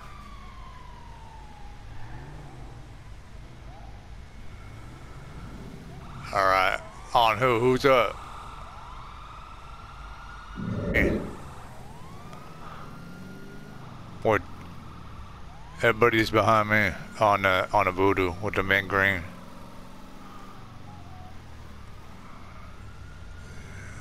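A car engine idles and revs as the car drives off.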